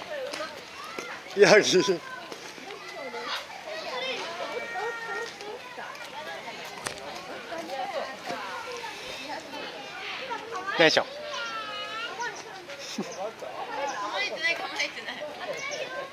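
Men and women chat casually nearby outdoors.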